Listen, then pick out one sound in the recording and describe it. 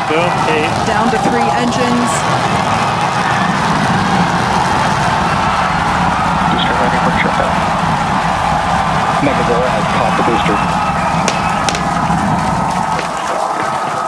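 A rocket engine roars loudly and then cuts off.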